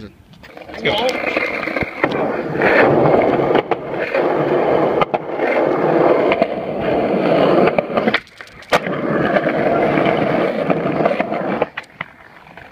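Skateboard wheels roll and rumble over rough concrete.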